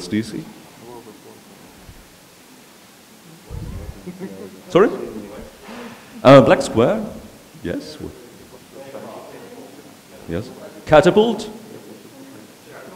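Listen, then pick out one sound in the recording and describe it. A young man speaks calmly to an audience through a microphone in a large room.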